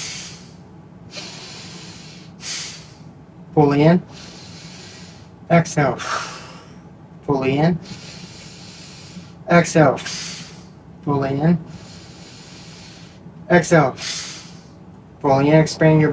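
A man breathes in and out audibly, close by.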